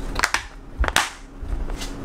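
Plastic lid clips snap shut on a food container.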